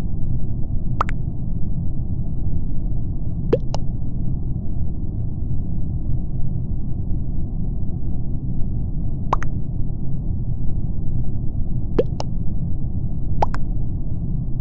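Short electronic chimes ring out now and then.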